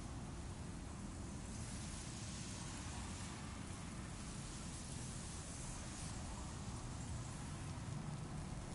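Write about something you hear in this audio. A small fire crackles and hisses softly.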